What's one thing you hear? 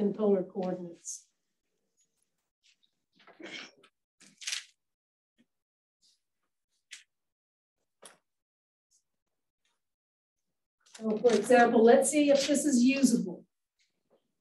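A woman lectures calmly through a microphone, with pauses.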